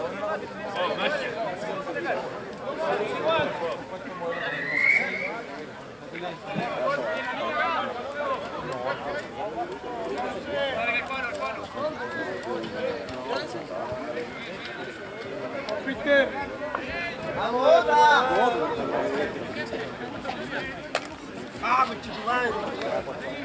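A crowd of men and women chatters close by, outdoors.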